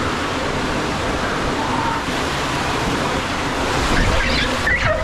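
Water flows steadily at the top of a slide.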